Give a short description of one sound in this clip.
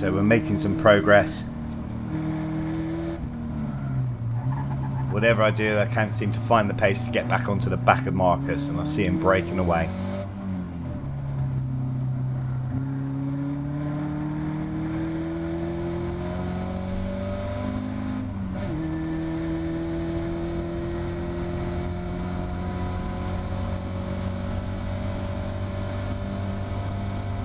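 A racing car engine roars close by, rising and falling in pitch as it accelerates and brakes.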